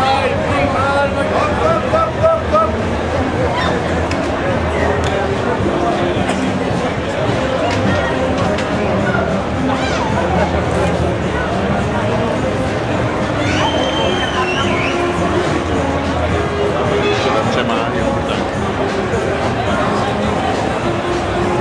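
A man on a stage speaks loudly to the crowd.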